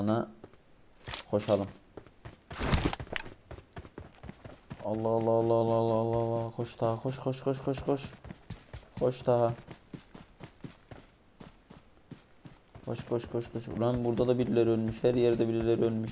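Footsteps patter quickly over the ground.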